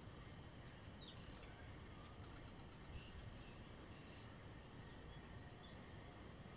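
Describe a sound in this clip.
A bird chirps briefly in a tree.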